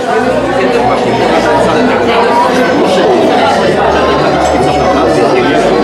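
A crowd of women chatter and talk over one another nearby.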